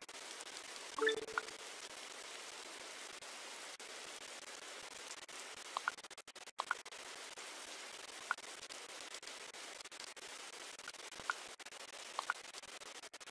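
Short electronic clicks sound as game menus open and close.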